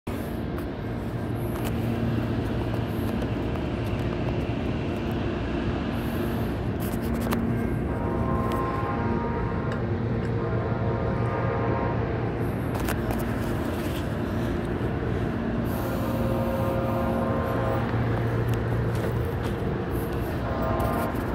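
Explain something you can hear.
A small engine hums and putters steadily nearby.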